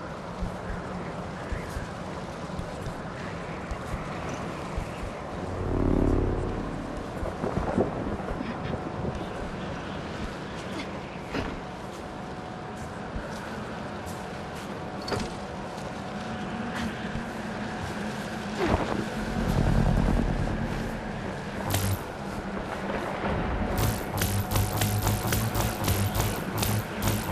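Wind howls steadily outdoors in a snowstorm.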